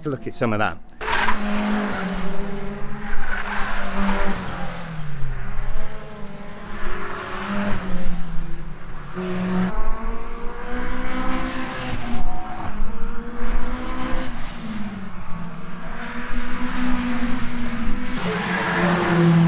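Racing car engines roar and rev as cars speed past.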